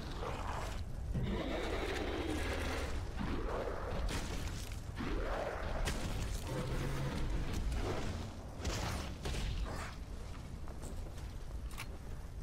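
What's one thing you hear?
Fire crackles.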